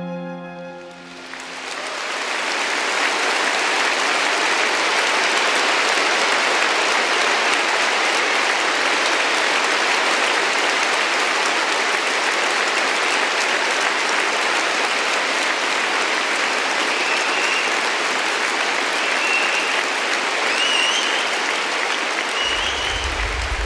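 A large crowd applauds loudly in a vast echoing hall.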